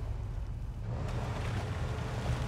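Water splashes under the wheels of a truck.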